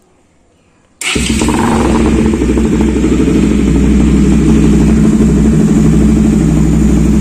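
A motorcycle engine starts up and idles with a loud, deep rumble close by.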